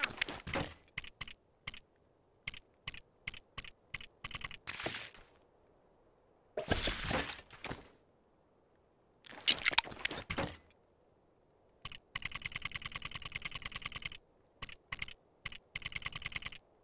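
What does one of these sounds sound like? Menu selection clicks tick quickly, one after another.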